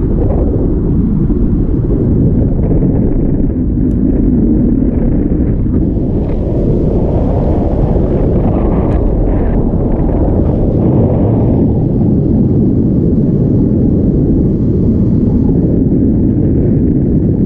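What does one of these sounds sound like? Strong wind rushes and buffets loudly throughout.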